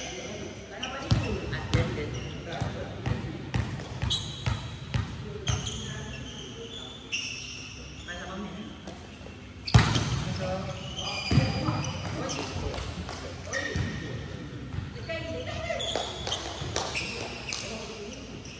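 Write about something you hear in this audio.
Sports shoes squeak on a wooden court.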